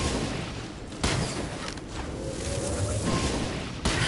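A fiery explosion bursts with a crackle.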